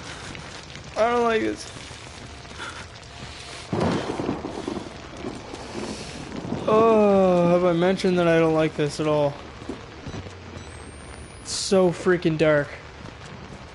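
A young man talks loudly and with animation into a close microphone, in short bursts.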